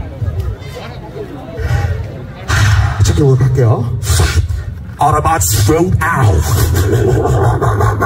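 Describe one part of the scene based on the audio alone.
A man raps into a microphone over loudspeakers outdoors.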